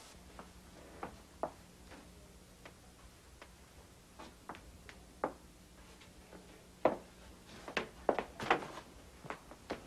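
Light knocks and taps sound as a wooden frame is handled.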